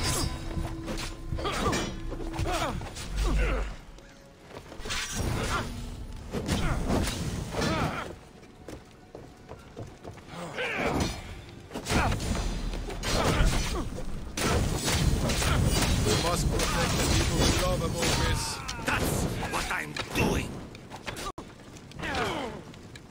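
Blades clash and whoosh in a game fight.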